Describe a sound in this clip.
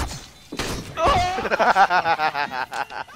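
A man laughs loudly through a microphone.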